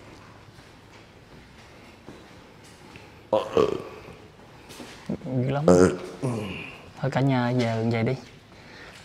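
Footsteps walk slowly across a hard tiled floor in an echoing room.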